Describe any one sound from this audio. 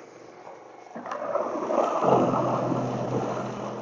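A snow blower engine starts and roars steadily outdoors.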